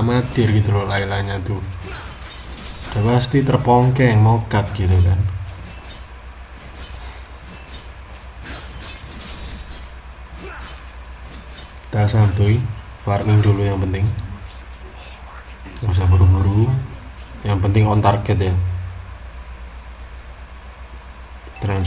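Sword strikes and magic blasts clash in quick bursts.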